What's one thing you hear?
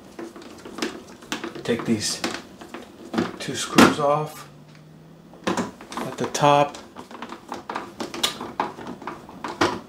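A screwdriver clicks and scrapes on metal screws.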